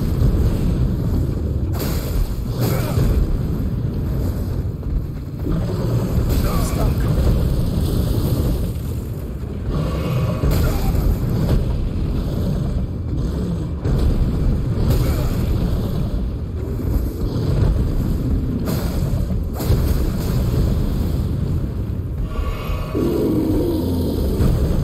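A huge beast growls and roars close by.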